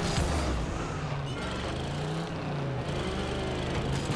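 A car hits a ball with a thump.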